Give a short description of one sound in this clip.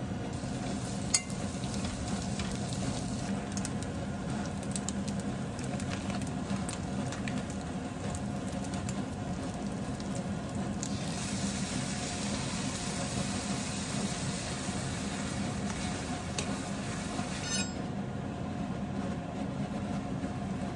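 Food sizzles and crackles as it fries in a pan.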